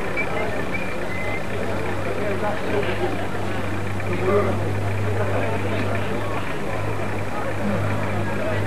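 A crowd of spectators chatters outdoors, heard from a distance.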